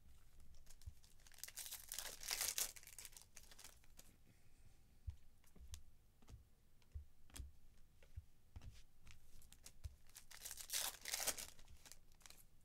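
Foil wrappers crinkle and rustle as they are torn open.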